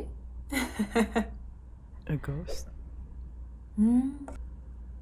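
A young woman speaks in short, surprised bursts close to a microphone.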